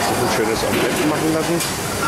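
A metal spatula scrapes across a hot griddle.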